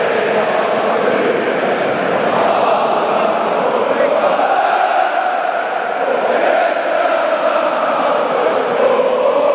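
A huge crowd of fans chants and sings loudly in a large echoing stadium.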